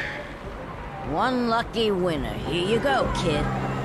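A young man calls out a winner with animation.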